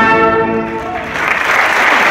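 A brass band plays a loud held chord in an echoing hall.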